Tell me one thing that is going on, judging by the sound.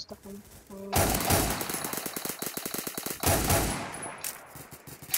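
A sniper rifle fires loud, echoing shots.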